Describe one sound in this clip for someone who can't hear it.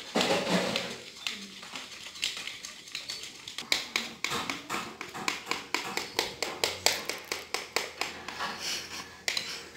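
A fork beats batter in a glass bowl with quick clinking taps.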